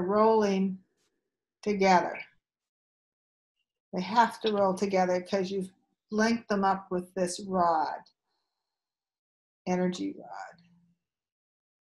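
An elderly woman speaks calmly and close to a microphone, with pauses.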